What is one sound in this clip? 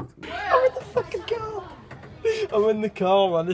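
A teenage boy laughs.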